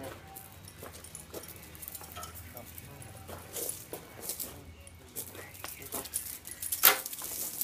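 A small dog's paws patter on gravel.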